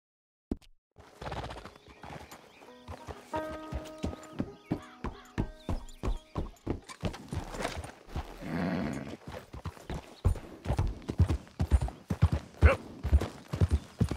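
A horse's hooves thud steadily on dirt and gravel.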